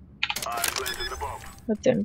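Keys on a bomb's keypad beep as it is armed.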